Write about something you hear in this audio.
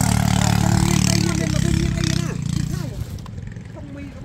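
A motorbike engine runs close by and then cuts out.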